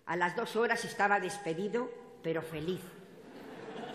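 An elderly woman speaks into a microphone over loudspeakers in a large hall.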